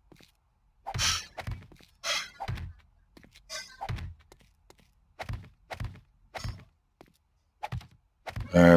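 Stone blocks thud as they are set into place.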